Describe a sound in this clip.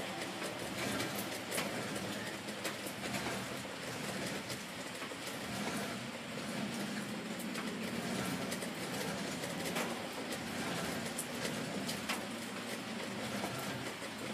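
A weight machine's metal plates clank softly as they rise and fall.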